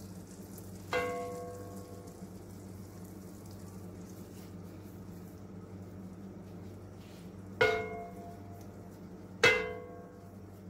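A ceramic bowl clinks sharply against the rim of a pan.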